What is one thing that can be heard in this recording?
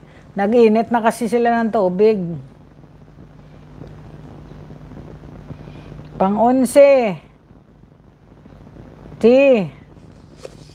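A middle-aged woman speaks with animation, in a sing-song voice, close to a microphone.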